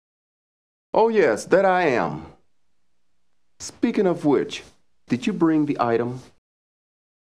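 A second man replies calmly and smoothly.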